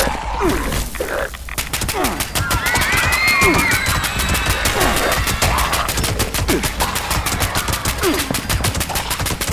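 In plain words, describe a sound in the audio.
Creatures snarl and screech.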